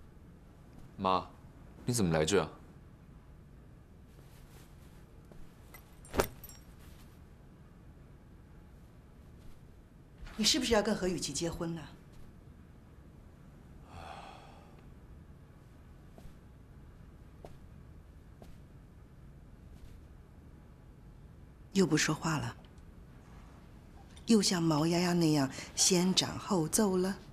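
A middle-aged woman speaks sharply nearby.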